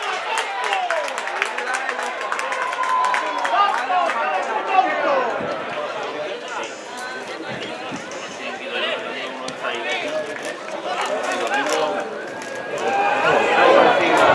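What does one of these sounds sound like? A small crowd of men shouts and calls out nearby, outdoors.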